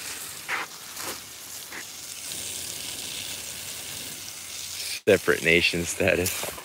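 A hose sprays water in a steady hiss.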